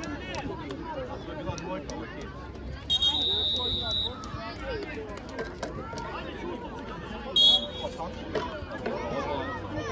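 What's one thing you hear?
Children shout and call out across an open outdoor pitch.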